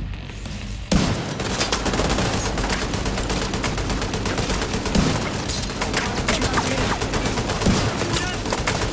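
Gunfire crackles rapidly and steadily in a firefight.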